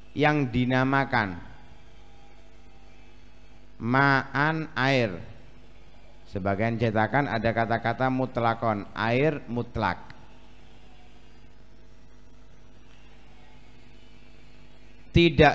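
A young man speaks slowly and melodiously into a microphone, in short phrases with pauses.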